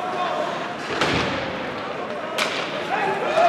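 Hockey sticks smack a puck on the ice.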